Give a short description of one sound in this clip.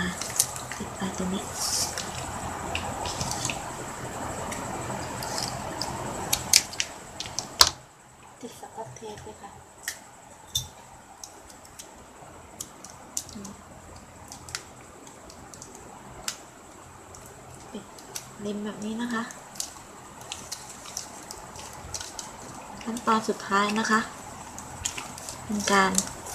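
Plastic ribbon crinkles and rustles as hands fold it.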